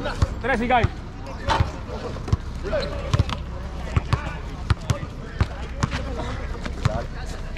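Men shout and call out to each other nearby.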